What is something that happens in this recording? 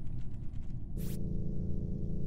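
A short electronic chime sounds as a panel opens.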